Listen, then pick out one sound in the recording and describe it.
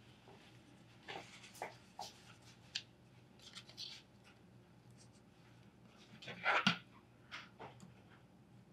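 Light knocks and taps sound as a small cardboard box is handled.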